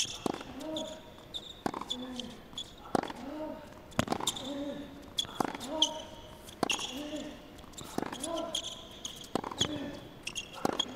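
A tennis ball is struck back and forth with sharp pops of the racket.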